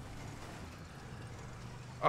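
An SUV engine runs as the SUV drives down a road.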